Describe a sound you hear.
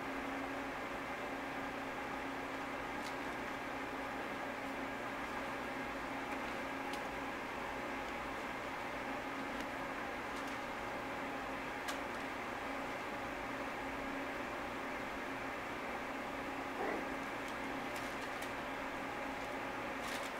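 Puppies' claws patter and scratch on a hard floor.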